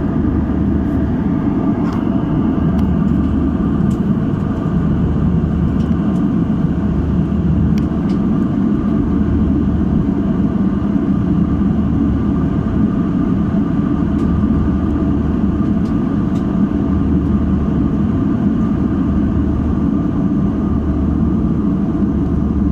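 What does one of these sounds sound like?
Jet engines roar steadily in a low, constant drone.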